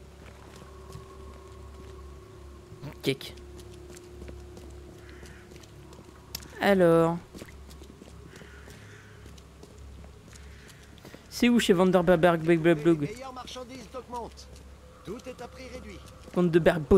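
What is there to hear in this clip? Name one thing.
Footsteps tap on wet cobblestones.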